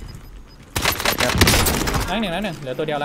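A gun fires a rapid burst of shots at close range.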